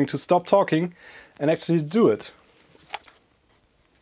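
A plastic case is set down on cardboard with a light knock.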